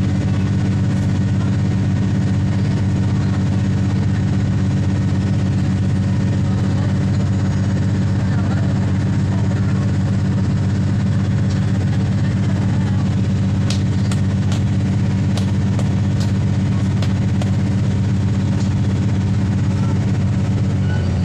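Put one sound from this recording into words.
A Cummins diesel engine drones under the floor of a moving railcar.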